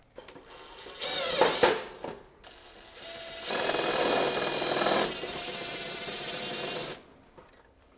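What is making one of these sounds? A cordless drill whirs as it drives screws.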